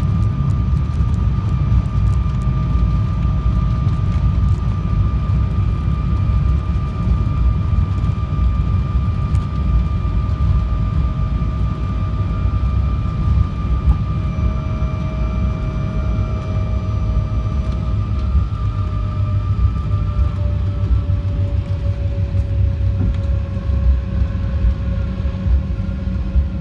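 Jet engines roar steadily with a low rumble and a high whine.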